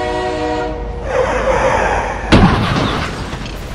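Trucks crash together with a loud metallic bang.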